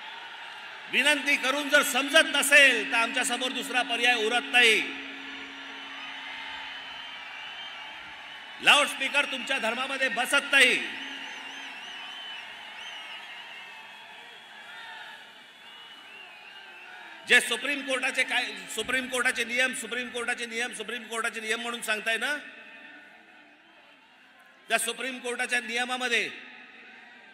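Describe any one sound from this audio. A man gives a speech forcefully through a loudspeaker microphone, in bursts with pauses, echoing outdoors.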